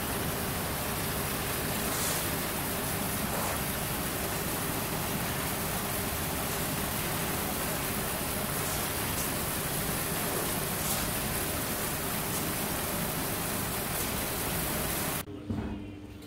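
A machine rumbles and roars steadily.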